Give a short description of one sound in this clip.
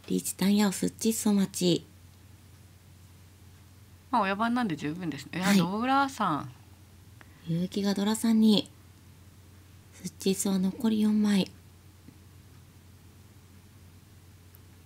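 Mahjong tiles click softly on a table.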